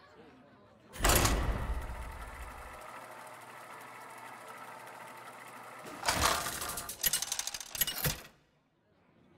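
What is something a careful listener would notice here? A game wheel whirs and rattles as it spins, ending with several sharp clicks.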